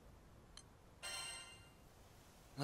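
A short, bright chime rings once.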